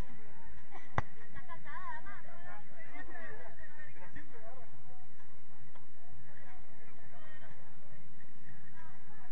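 Young players shout to each other across a field outdoors.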